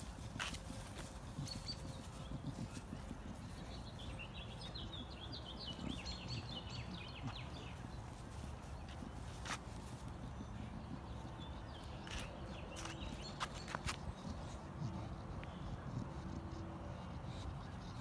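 A dog sniffs and snuffles at the grass close by.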